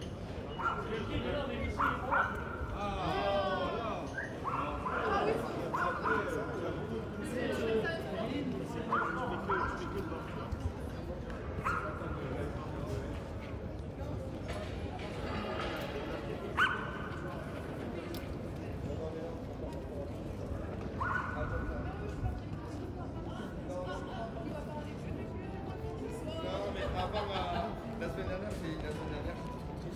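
A crowd of men and women chatter at a distance outdoors.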